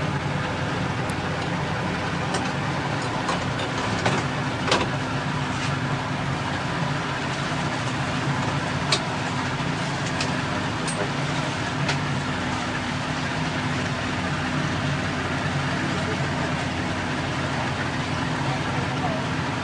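Water rushes against the hull.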